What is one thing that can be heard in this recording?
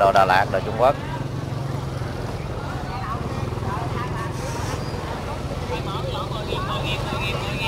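Motorbike engines hum as they ride slowly past.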